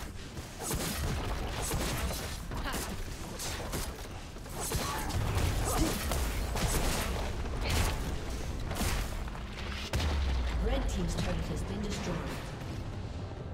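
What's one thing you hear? Spell blasts and sword hits clash in a fast battle.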